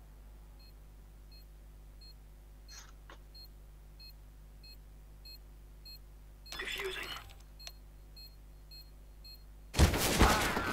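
A bomb beeps at a steady pace.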